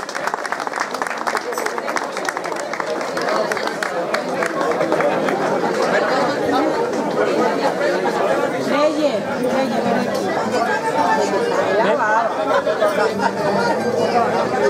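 Guitars and mandolins strum a lively tune outdoors.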